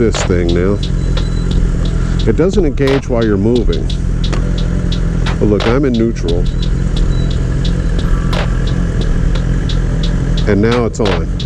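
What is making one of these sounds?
A motorcycle engine drones steadily while riding.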